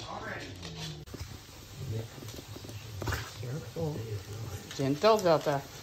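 A dog sniffs eagerly at close range.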